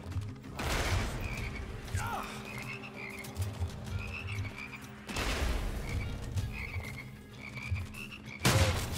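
A gun fires in loud blasts.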